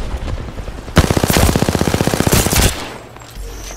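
Rapid gunfire rattles in a fast burst.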